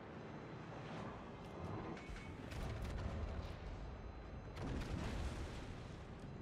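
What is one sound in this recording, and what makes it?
Shells explode with heavy rumbling bursts.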